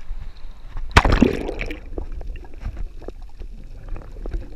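Water rushes and bubbles as it goes underwater.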